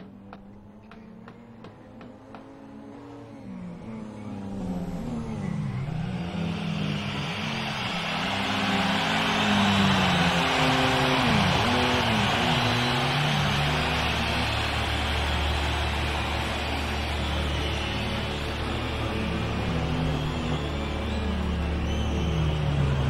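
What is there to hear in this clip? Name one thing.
A car engine revs up and down hard.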